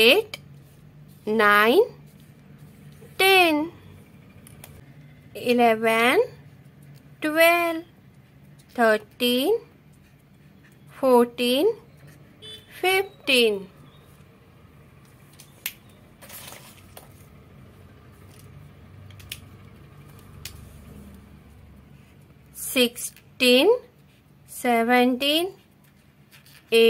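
A felt-tip marker squeaks and scratches on paper.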